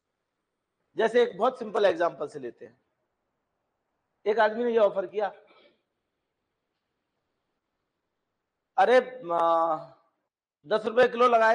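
A middle-aged man speaks with animation in short bursts, close by.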